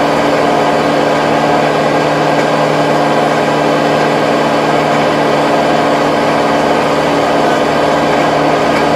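A rotary tiller churns and rattles through soil.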